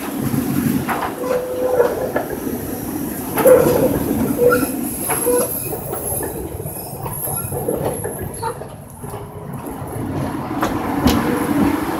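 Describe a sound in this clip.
A tram rumbles along the rails nearby.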